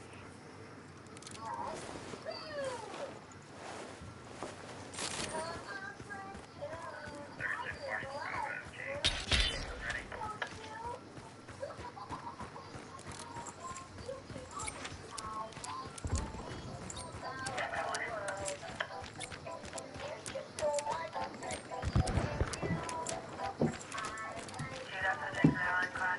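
Footsteps crunch steadily on dry grass and gravel.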